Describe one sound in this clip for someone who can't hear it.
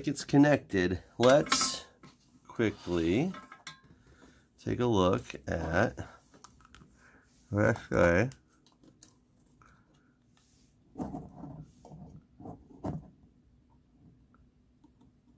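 Small metal parts and a circuit board clatter softly as hands move them.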